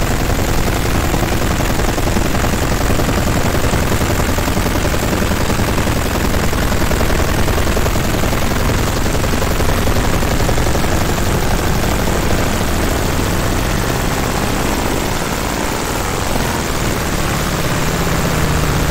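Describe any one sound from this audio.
A laser engraver hisses and crackles steadily as it burns into wood.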